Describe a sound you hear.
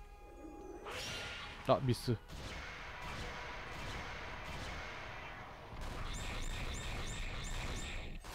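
Game attack effects crash and burst in quick succession.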